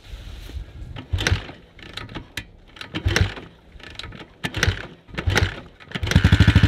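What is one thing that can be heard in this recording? A man kicks a motorcycle's kick-starter with heavy thumps.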